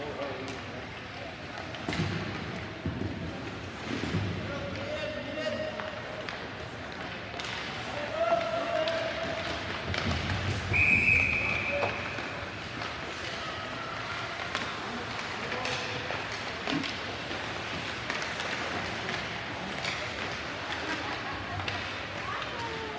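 Skate blades scrape and hiss across ice in a large echoing rink.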